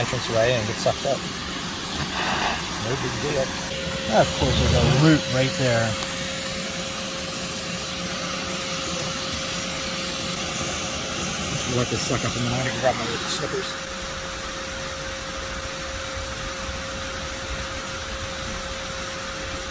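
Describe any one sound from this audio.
A vacuum hose roars steadily as it sucks at loose soil.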